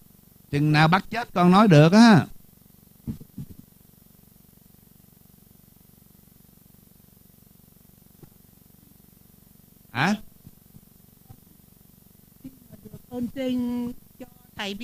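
A man sings slowly into a microphone, with long pauses between phrases.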